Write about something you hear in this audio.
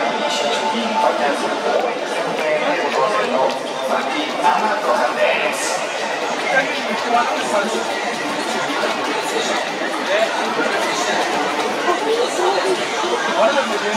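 Young men chat and laugh nearby.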